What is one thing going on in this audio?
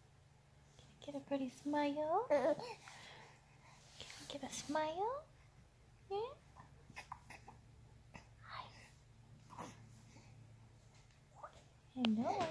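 A baby coos softly up close.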